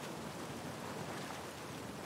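A man wades through water, splashing.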